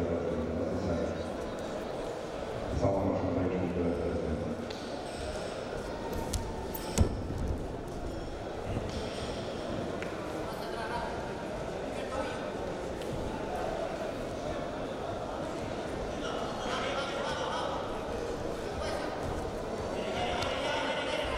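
Wrestlers' shoes squeak and thud on a mat.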